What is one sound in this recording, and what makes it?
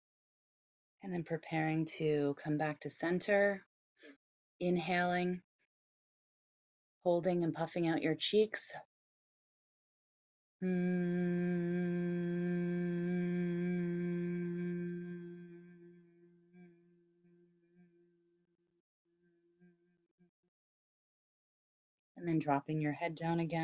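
A woman speaks calmly into a nearby microphone.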